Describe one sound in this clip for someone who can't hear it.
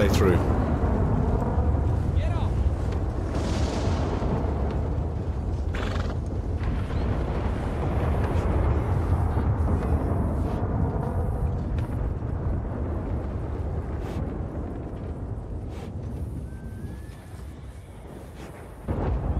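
Waves lap gently against a shore, slowly growing quieter.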